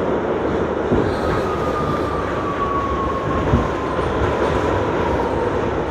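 A subway train rumbles loudly through a tunnel.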